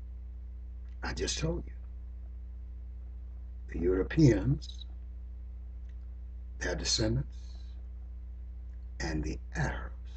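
An elderly man speaks calmly in short phrases with long pauses, close to a microphone.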